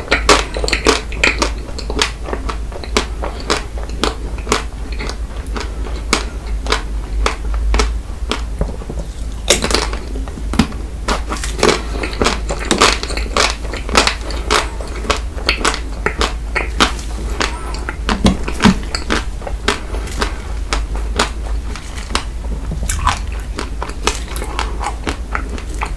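A man makes wet smacking mouth sounds close to a microphone.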